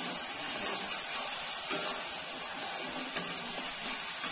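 A metal spatula scrapes and stirs in a steel wok.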